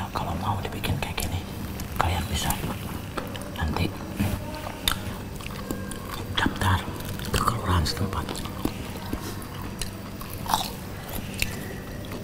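A man talks casually up close.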